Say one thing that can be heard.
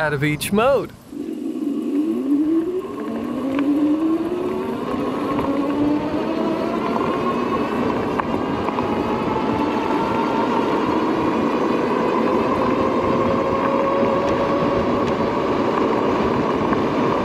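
An electric motor whines, rising steadily in pitch as a bike speeds up.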